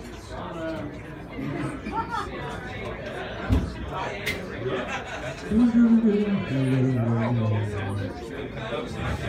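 A crowd chatters nearby.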